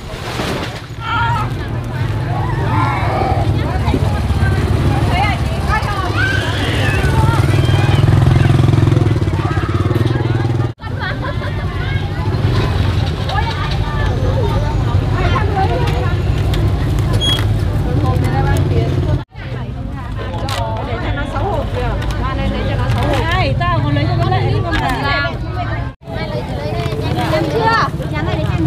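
Several women talk with animation close by.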